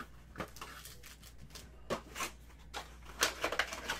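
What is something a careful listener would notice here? A foil pack is set down on a table with a soft tap.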